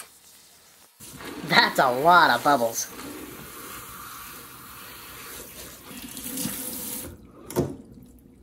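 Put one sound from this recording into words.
Running water splashes into a sink.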